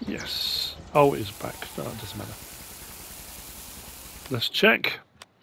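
Grain pours out with a steady hiss.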